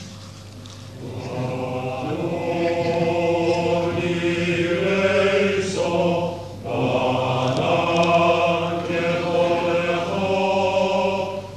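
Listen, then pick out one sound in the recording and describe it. A male choir sings together in a large hall.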